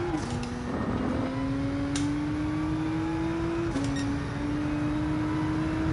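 A racing car engine roars steadily, its pitch climbing and dropping sharply at each gear change.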